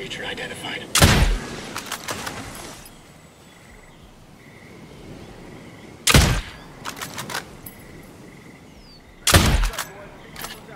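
A rifle fires sharp single shots with a short echo.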